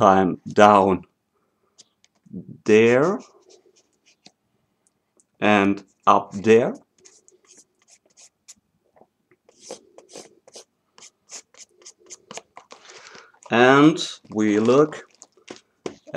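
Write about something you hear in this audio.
A felt-tip marker squeaks and scratches on cardboard.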